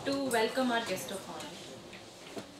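A young woman speaks into a microphone in a large room.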